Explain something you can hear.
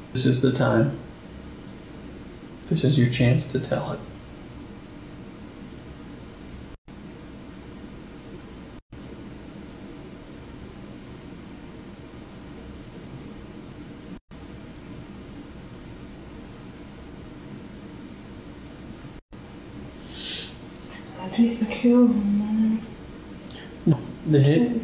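A man speaks calmly, heard from across a small room.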